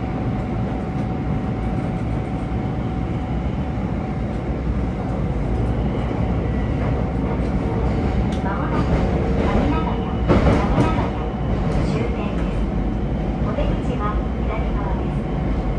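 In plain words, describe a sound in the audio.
A train rumbles and rattles steadily along the track.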